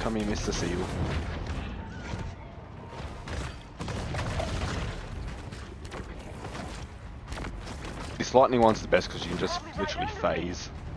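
Water rumbles and churns underwater.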